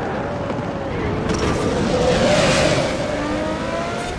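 Tyres screech on asphalt as a car corners.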